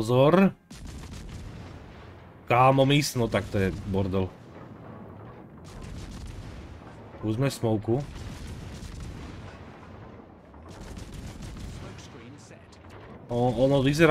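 Anti-aircraft guns rattle in rapid bursts.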